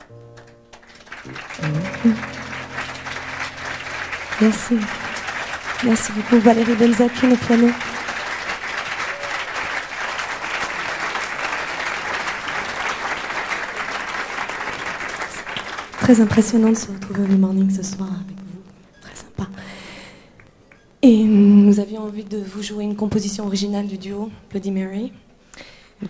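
A piano plays softly.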